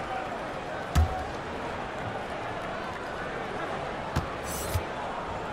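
A basketball bounces on a hardwood floor a few times.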